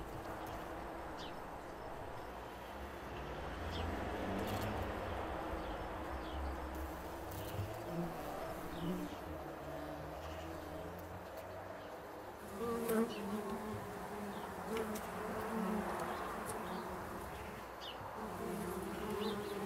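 Bumblebees buzz close by at a nest entrance.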